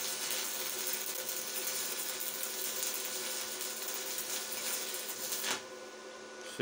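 An electric welder crackles and sizzles steadily.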